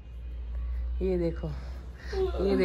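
A woman yawns loudly.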